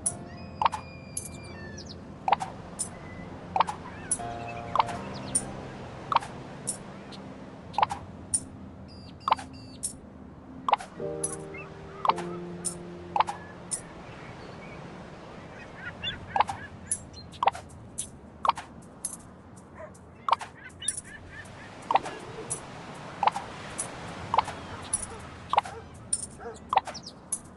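Game coins chime again and again as they are collected.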